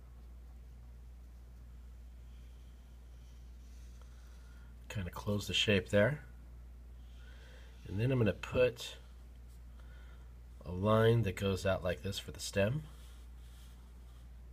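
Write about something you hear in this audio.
A felt marker squeaks softly as it draws across paper.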